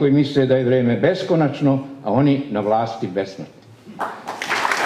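An elderly man speaks loudly through a microphone in an echoing hall.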